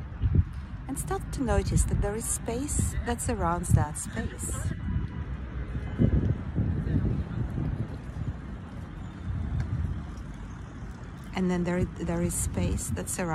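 A woman speaks calmly, close to the microphone.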